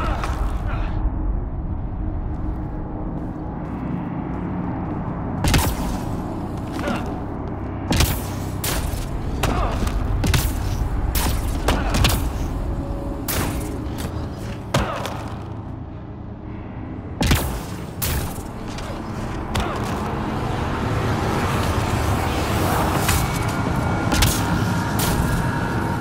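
Heavy boots thud on rocky ground.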